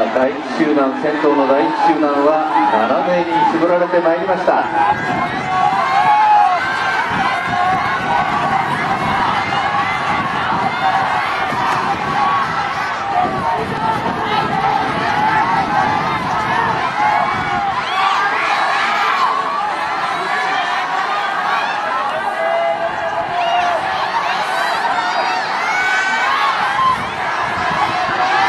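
A crowd of spectators cheers and shouts loudly throughout.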